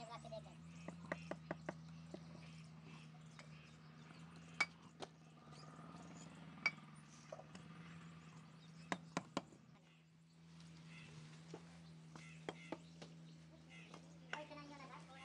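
A trowel handle taps bricks into place with sharp knocks.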